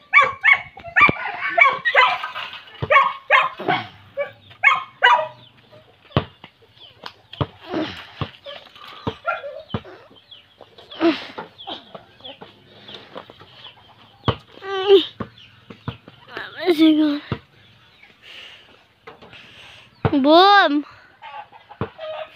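A ball thumps on the ground as it bounces.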